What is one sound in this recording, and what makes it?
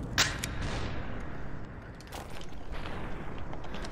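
Glass and pottery shatter with a crash.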